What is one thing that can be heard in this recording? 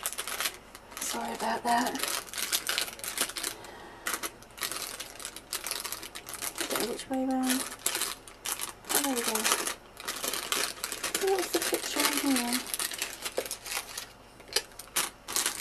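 Paper crackles and rustles as hands handle a paper packet.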